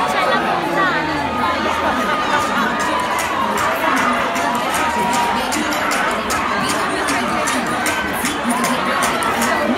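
Young women shriek with excitement close by.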